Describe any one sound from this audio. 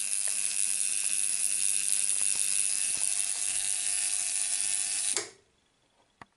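Small electric sparks buzz and crackle across a multi-gap spark gap.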